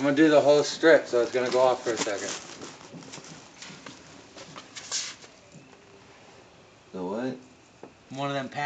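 A young man talks loudly and excitedly close by.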